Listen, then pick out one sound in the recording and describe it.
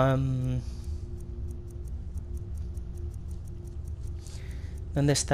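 Soft ticks click quickly one after another.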